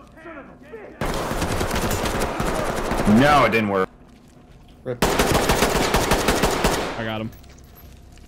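Rapid gunfire bursts loudly at close range.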